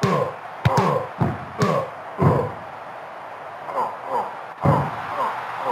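Heavy blows and body slams thud.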